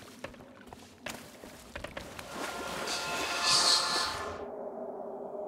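A waterfall rushes and splashes close by.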